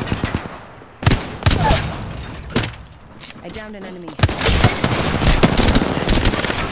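A rifle fires rapid shots in a video game.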